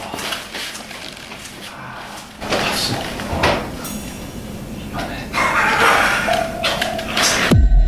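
A man lying down murmurs and mutters sleepily.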